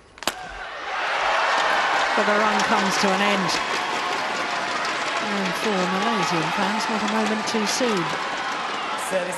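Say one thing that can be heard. A large crowd claps.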